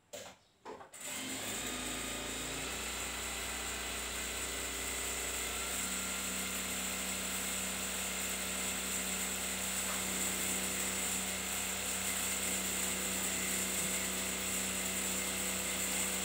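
A sewing machine runs with a steady, fast whir.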